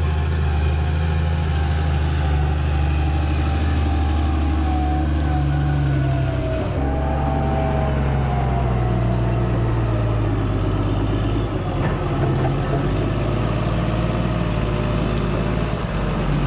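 A heavy diesel engine rumbles steadily close by, its pitch rising and falling as it revs.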